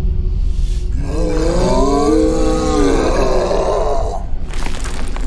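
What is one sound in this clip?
A man groans in a low, half-roaring voice.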